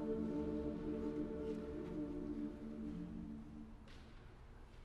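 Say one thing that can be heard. A large choir sings a sustained chord in a reverberant hall and lets it ring out.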